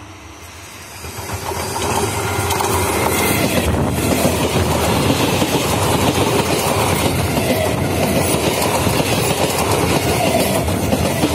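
A passing train rumbles and clatters along the tracks close by.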